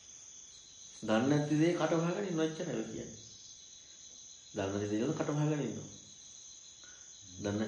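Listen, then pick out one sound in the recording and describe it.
A man speaks calmly and slowly through a microphone, with long pauses.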